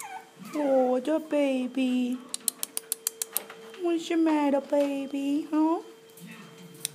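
Puppies whine in high, shrill cries.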